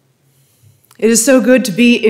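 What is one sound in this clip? A middle-aged woman speaks calmly through a microphone.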